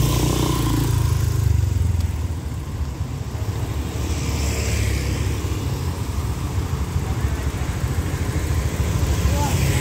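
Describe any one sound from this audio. A scooter engine idles close by.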